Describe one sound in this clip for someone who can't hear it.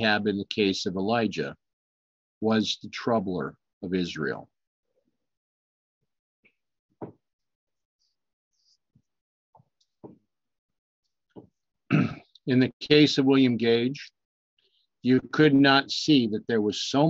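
An older man speaks calmly and closely into a microphone, with pauses.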